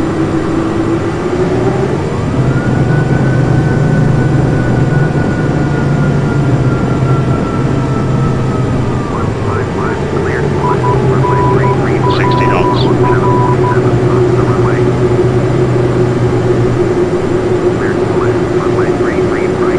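Jet engines roar steadily and rise in pitch.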